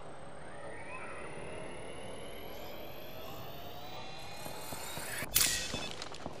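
A medical kit whirs and hums as it is used.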